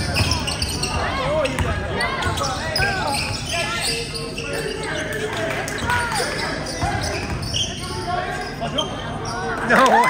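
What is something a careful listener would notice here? A basketball bounces on a hard floor.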